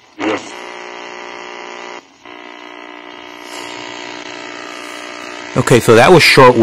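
A radio hums with a steady tone.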